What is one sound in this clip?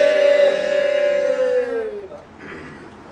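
A group of men and women chant together in one long, loud note that falls away at the end.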